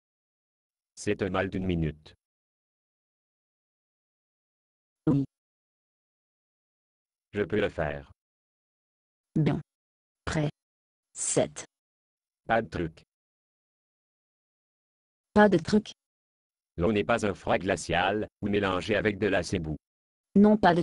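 A young boy's voice speaks in short, cheerful lines.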